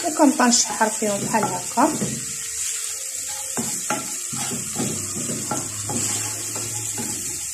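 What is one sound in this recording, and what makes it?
A wooden spoon scrapes and stirs food in a frying pan.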